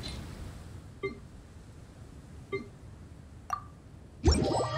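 Soft clicks sound as menu options are picked.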